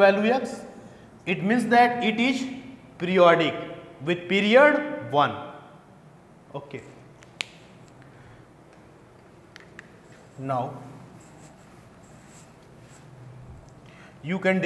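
A man speaks clearly and calmly into a clip-on microphone, with pauses.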